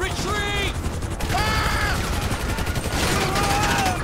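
A helicopter's rotor thuds and whirs nearby.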